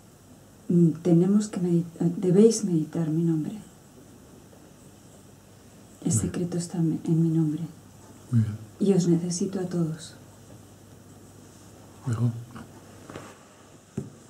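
An older man speaks calmly and close by, with pauses.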